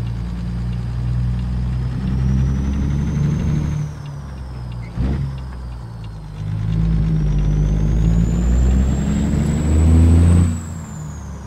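A big-rig diesel truck engine pulls under load, easing off briefly between gears.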